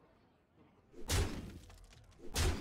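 A game impact strikes sharply.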